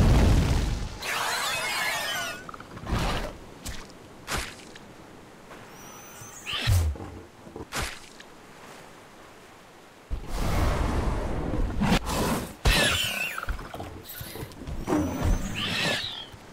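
Dinosaurs roar and screech.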